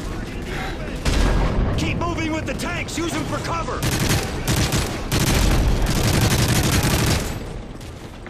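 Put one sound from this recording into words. Rapid gunfire crackles in a noisy battle.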